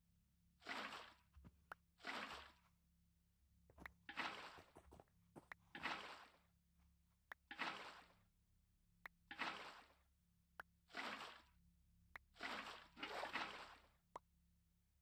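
Water splashes again and again as buckets are poured.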